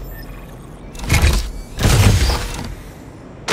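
Steam hisses out in a sharp burst.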